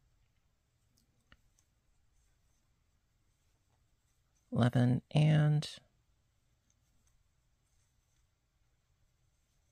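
A crochet hook softly rubs and clicks against yarn.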